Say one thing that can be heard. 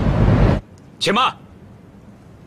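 A middle-aged man shouts loudly outdoors.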